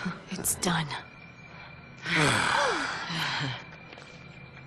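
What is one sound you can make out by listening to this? A young woman speaks calmly and firmly.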